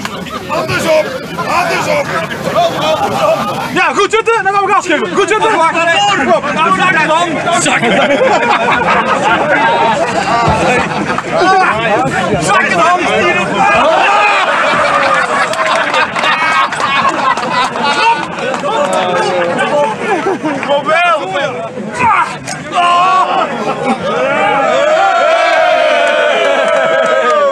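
A crowd of men laughs and cheers loudly outdoors.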